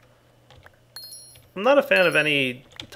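A soft magical chime tinkles.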